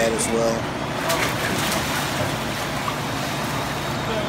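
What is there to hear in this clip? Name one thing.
Water splashes loudly as pelicans lunge and flap.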